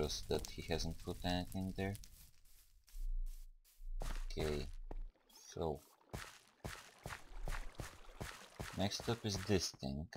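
Footsteps tread softly on grass and stone.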